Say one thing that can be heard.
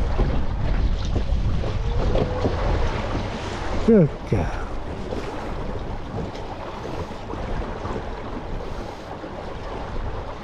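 Water laps and splashes against the hull of a small moving boat.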